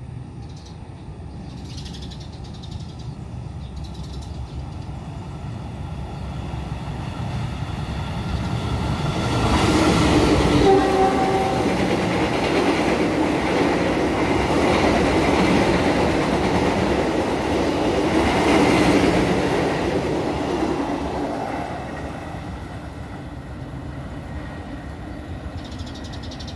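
A train approaches, then rumbles loudly past close by and fades into the distance.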